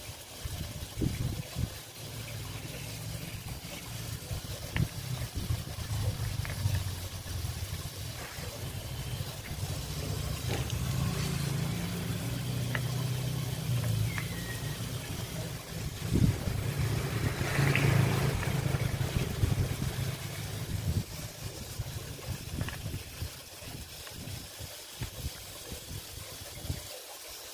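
Plastic caps click and tap against a battery.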